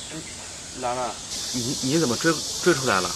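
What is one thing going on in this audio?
A young man answers outdoors.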